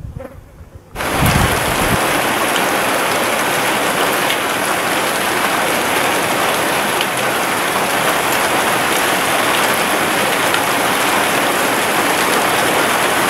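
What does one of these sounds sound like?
Steady wind rushes through leaves.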